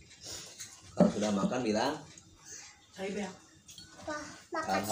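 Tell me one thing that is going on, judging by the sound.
A small child talks excitedly close by.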